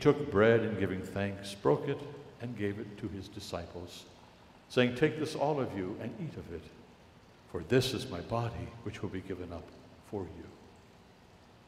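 An elderly man speaks slowly and solemnly through a microphone in a large echoing hall.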